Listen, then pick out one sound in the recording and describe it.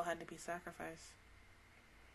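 A young woman speaks briefly and close up into a microphone.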